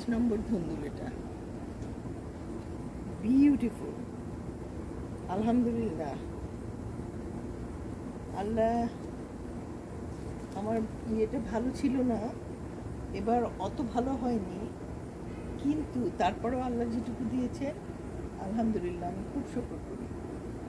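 An older woman talks calmly and close by.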